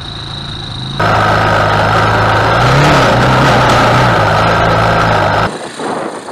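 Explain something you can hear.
A single-cylinder four-stroke quad engine revs hard during a wheelie.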